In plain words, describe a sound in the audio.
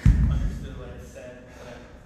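A heavy weight thuds onto the floor.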